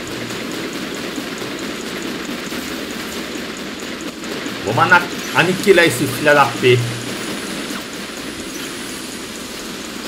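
Large guns fire in rapid bursts with explosions.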